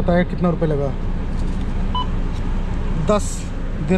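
A card reader beeps once.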